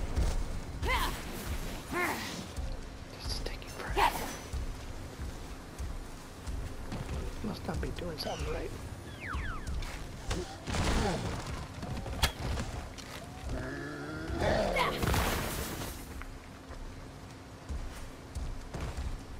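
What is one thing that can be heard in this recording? Combat sound effects whoosh and thud in a game.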